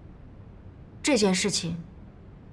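A young woman answers calmly close by.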